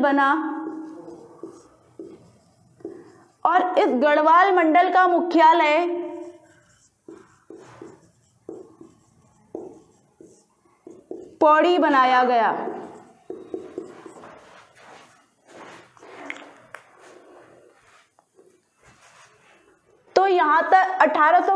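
A young woman speaks clearly and with animation, close by, with pauses.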